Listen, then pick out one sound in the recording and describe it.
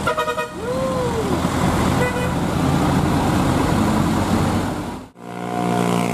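A loaded diesel dump truck labors up a hill.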